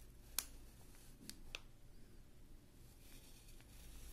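A pen scratches lightly across paper.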